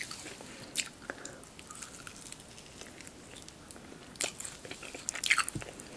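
Close up, a woman chews and slurps food with wet mouth sounds.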